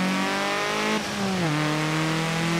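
A race car engine drops in pitch with a quick gear change.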